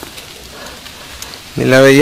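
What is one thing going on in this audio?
A gloved hand rustles through leaves and grass.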